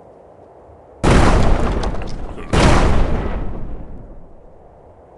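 A blast bursts and scatters rubble.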